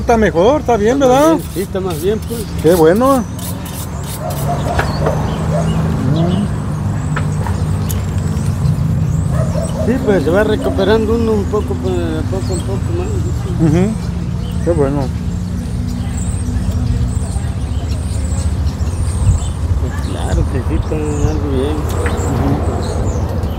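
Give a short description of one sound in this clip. Two men talk casually close by.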